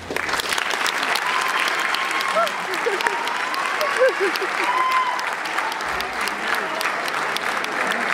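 An audience claps rapidly.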